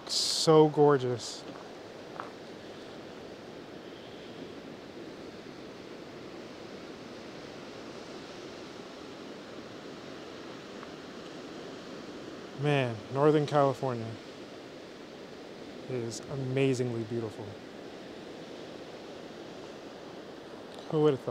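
Waves break and wash over rocks in the distance.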